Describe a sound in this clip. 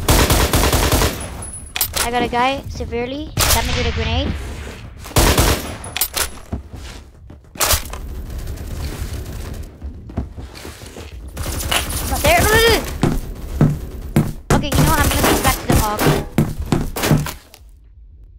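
Rapid gunshots crack in short bursts.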